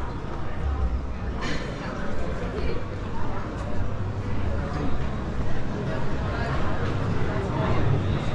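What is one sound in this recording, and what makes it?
A crowd of diners chatters nearby, growing louder.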